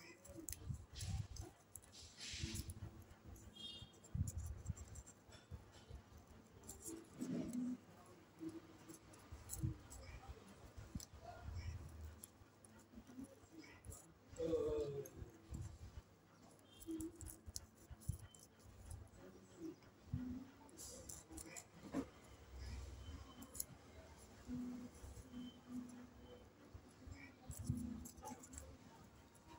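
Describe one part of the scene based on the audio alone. Scissors snip through paper with short, crisp cuts.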